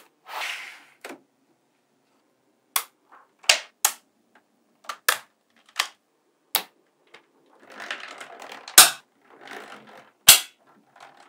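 Small steel magnetic balls click and snap together.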